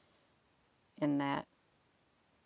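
A middle-aged woman says a short word close to a microphone.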